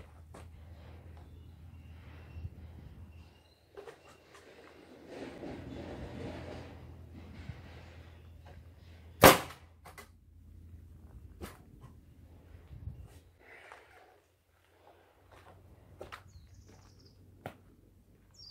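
Wood knocks and thumps sharply.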